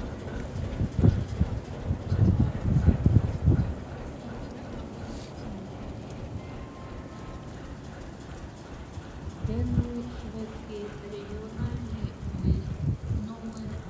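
Train wheels clack heavily over rail joints.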